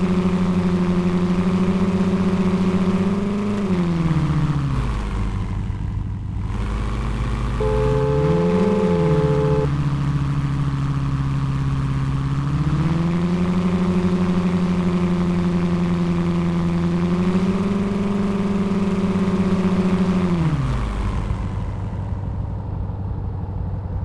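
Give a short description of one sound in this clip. A car engine hums steadily, dropping and rising in pitch as the car slows and speeds up.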